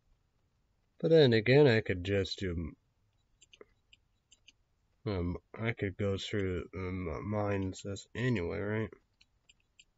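A young man speaks calmly and close to the microphone, in short bursts.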